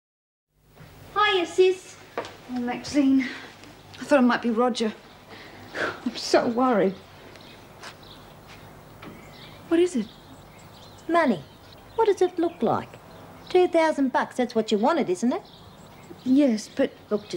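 A second young woman answers in a low voice.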